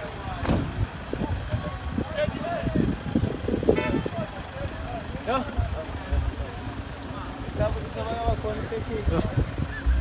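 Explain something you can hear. Men talk and call out nearby, outdoors.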